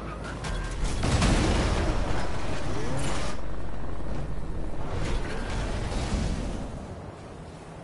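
A car surges with a loud rushing boost.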